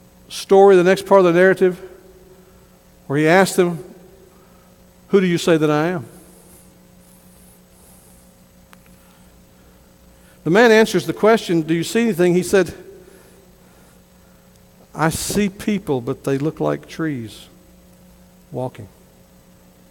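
A middle-aged man preaches slowly and forcefully through a microphone in an echoing hall, with long pauses.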